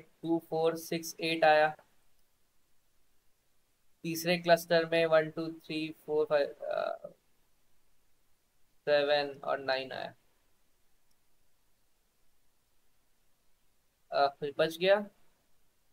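A young man speaks calmly through an online call, pausing between phrases.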